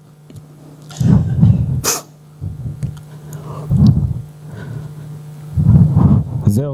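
A middle-aged man speaks through a microphone in a large echoing hall, presenting calmly.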